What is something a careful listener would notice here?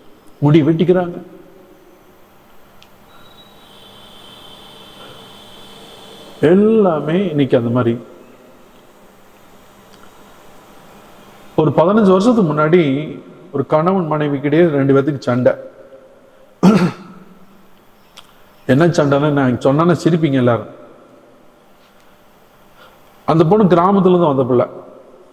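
An elderly man speaks slowly and with feeling through a microphone, with long pauses between phrases, in an echoing hall.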